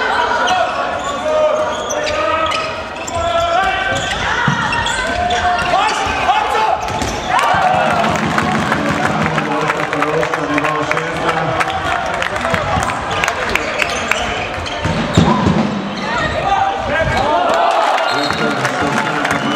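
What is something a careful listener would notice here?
A handball thuds as it bounces on the floor.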